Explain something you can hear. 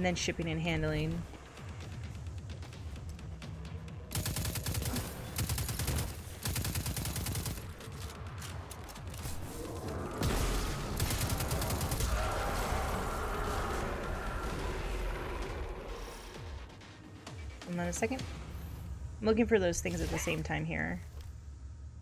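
A young woman speaks casually into a microphone.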